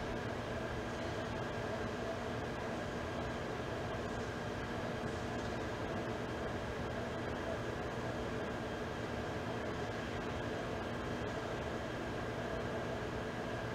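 A crowd murmurs quietly.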